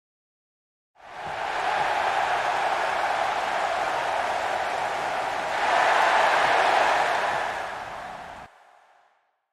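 A large crowd cheers and roars in an arena.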